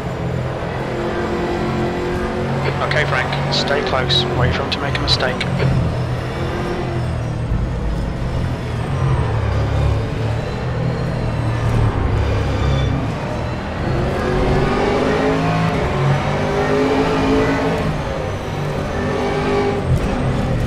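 A racing car engine roars loudly, rising and falling in pitch as the car speeds up and slows.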